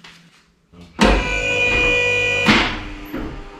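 A metal part clanks and rings.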